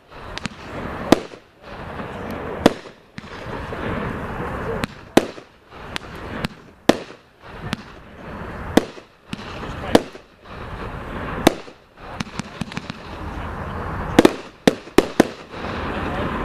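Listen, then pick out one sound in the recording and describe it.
Fireworks crackle and fizz between the bangs.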